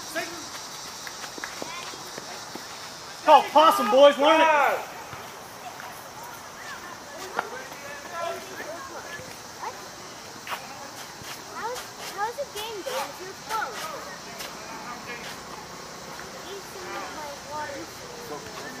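Men talk and call out to each other across an open field outdoors.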